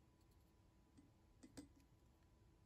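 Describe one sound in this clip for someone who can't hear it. A plastic tester knocks lightly against a glass of water.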